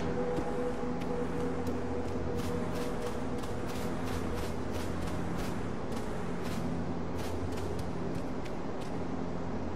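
Quick footsteps crunch on snow.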